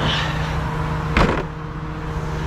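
A heavy metal panel clunks shut.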